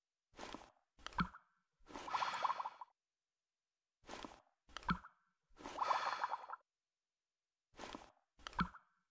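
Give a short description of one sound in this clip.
Bubbles pop with soft little pops.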